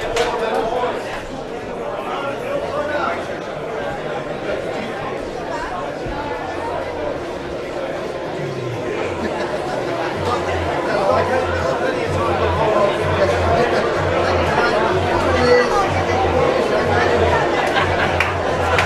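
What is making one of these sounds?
A crowd chatters and calls out loudly in a large echoing hall.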